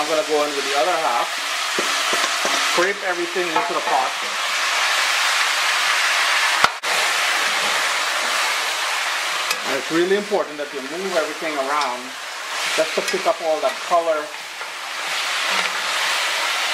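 Meat sizzles in a hot pot.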